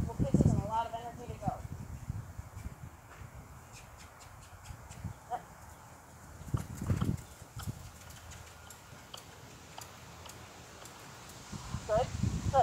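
A girl calls out nearby outdoors.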